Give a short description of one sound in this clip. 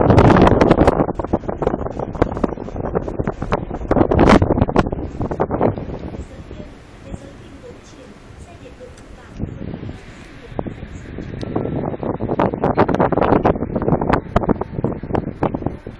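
Wind rushes and buffets in strong gusts.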